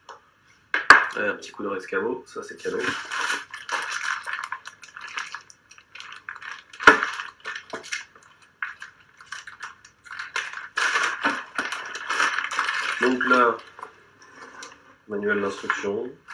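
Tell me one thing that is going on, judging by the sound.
Plastic wrapping crinkles and rustles as it is handled.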